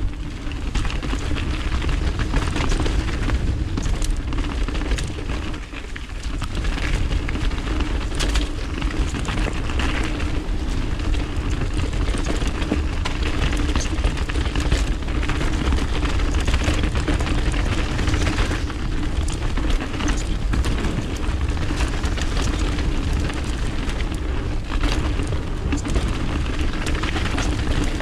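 Bicycle tyres roll and crunch over a dirt trail with loose stones.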